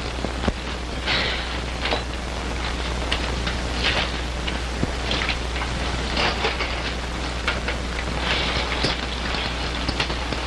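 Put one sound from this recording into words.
Leaves and branches rustle as men push through bushes.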